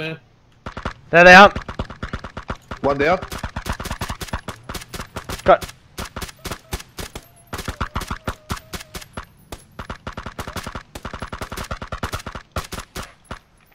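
A rifle fires rapid single shots.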